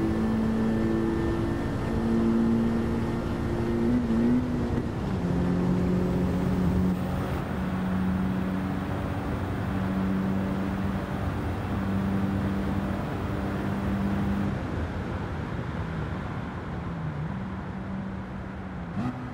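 A car engine roars at high revs, droning steadily and shifting pitch between gears.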